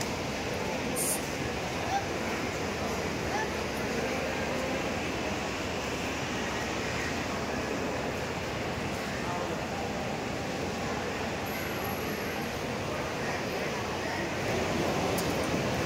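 A crowd murmurs with many voices in the distance.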